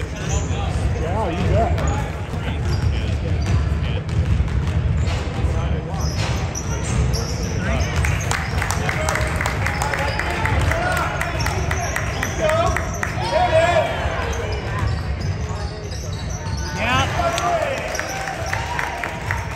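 Basketball shoes squeak sharply on a hard court in a large echoing gym.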